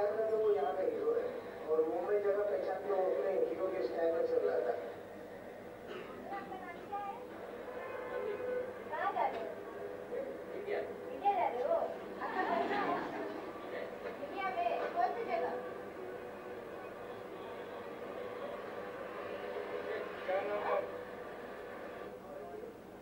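A man speaks, heard through a loudspeaker in a room.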